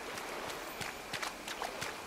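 Feet splash through shallow water.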